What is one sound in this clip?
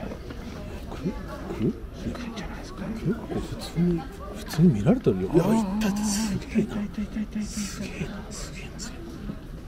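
A man speaks in a hushed, excited voice close by.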